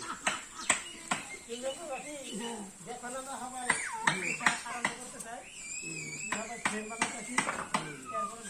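Hammer blows knock sharply on wood, again and again.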